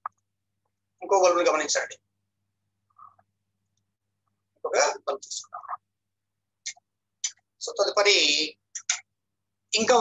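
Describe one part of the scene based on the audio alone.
A middle-aged man speaks calmly close to a microphone, with pauses.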